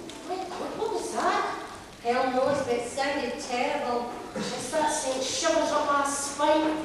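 Performers sing on stage, heard from within the audience.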